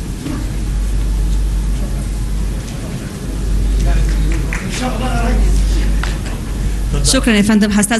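A large crowd applauds in a big hall.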